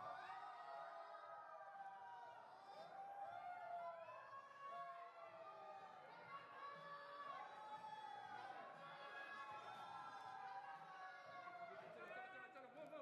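A crowd of men and women shout and cheer loudly in an echoing indoor hall.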